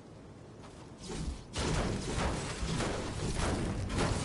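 A pickaxe strikes metal repeatedly with loud clangs.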